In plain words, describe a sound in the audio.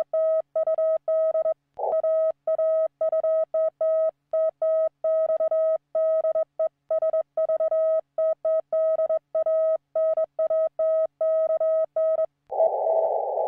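A Morse code tone beeps in quick bursts from a radio.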